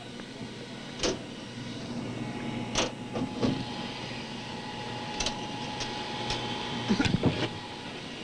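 Switches click and knock sharply.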